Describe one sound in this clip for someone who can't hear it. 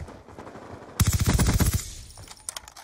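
A rifle fires a quick burst of loud shots.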